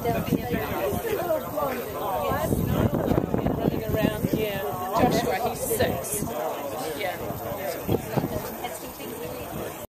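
Several men and women chat at once close by.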